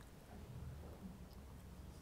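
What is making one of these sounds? A woman sips water from a glass.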